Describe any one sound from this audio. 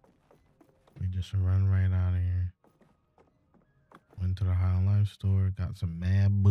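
A young man speaks with animation close to a microphone.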